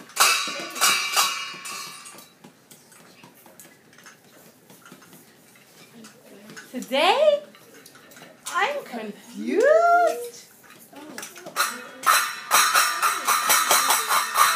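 A child taps and rubs a hand drum.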